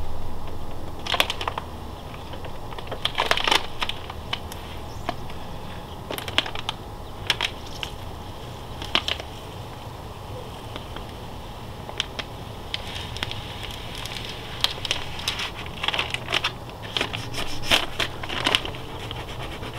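A plastic sticker crackles and rips as it is peeled off a wall.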